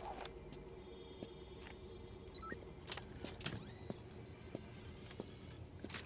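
A mechanical leg brace whirs and clicks as it moves.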